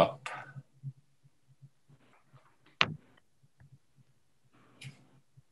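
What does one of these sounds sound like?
A man speaks haltingly over an online call.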